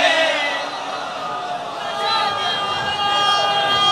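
A crowd of men beats their chests in rhythm.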